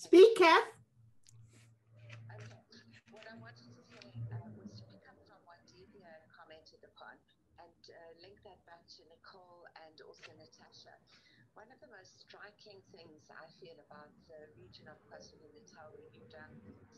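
An older woman speaks warmly through an online call.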